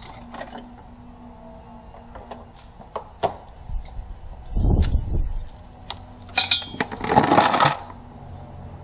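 Metal tools clink and rattle against engine parts.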